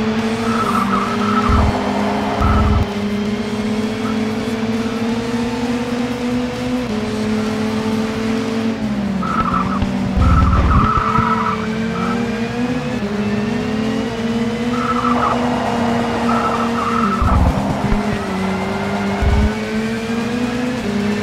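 A racing car engine drones steadily, its pitch rising and dropping with gear changes.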